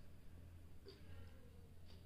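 A plastic tube of cream is squeezed with a soft squelch.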